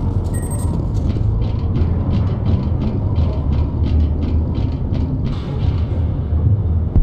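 Footsteps clank on metal ladder rungs.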